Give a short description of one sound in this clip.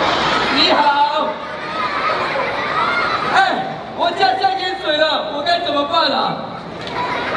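A man speaks loudly to a crowd.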